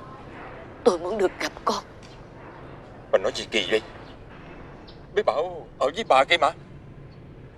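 A woman speaks emotionally, close by.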